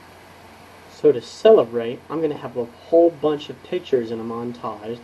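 A young man speaks calmly, close to a microphone.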